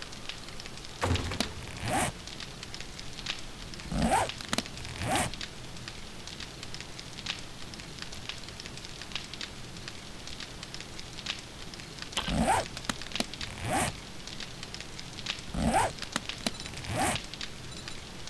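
Short whooshing swipes sound as game menu pages change.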